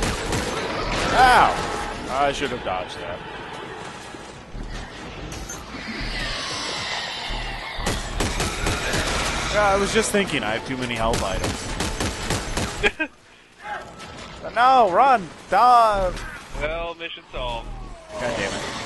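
A large creature shrieks loudly.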